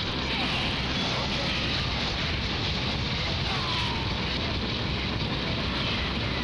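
Explosions boom in a video game battle.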